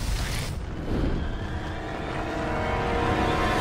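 A giant creature groans low and long.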